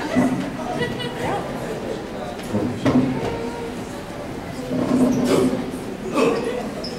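A young woman speaks with animation into a microphone, heard through loudspeakers in a room.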